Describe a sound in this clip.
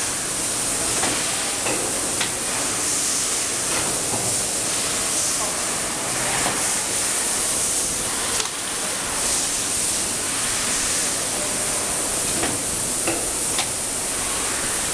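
Plastic covers clack against metal posts.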